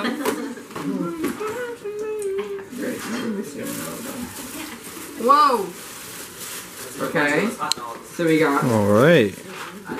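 Wrapping paper and tissue rustle and crinkle as a gift is unwrapped.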